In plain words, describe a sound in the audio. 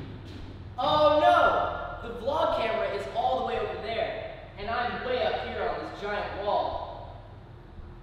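A young man talks with animation, heard from a distance in an echoing hall.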